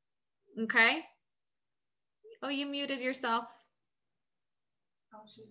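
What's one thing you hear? A young woman talks calmly into a microphone, close up, in short bursts.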